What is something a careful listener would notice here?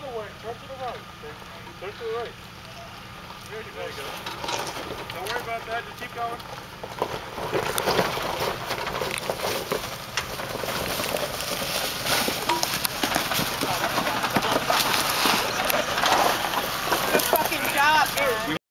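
Men talk and call out outdoors nearby.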